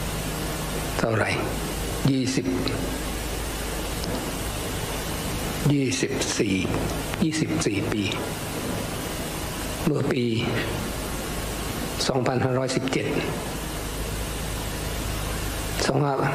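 An elderly man speaks slowly and calmly through a microphone, in a large echoing hall.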